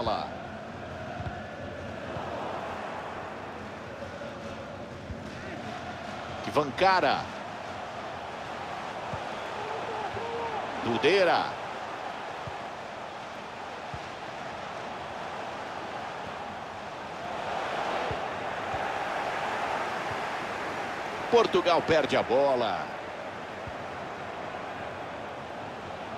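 A large stadium crowd murmurs and cheers steadily, swelling now and then.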